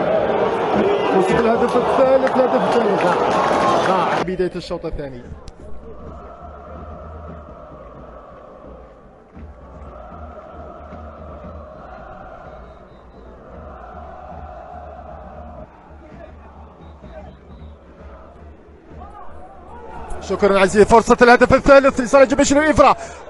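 A large crowd in a stadium roars and chants loudly.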